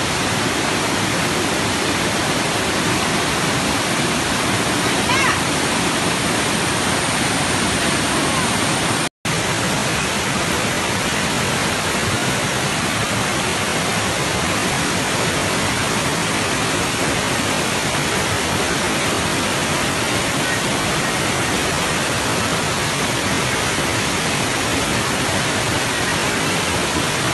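A muddy flood stream roars and rushes loudly over rocks.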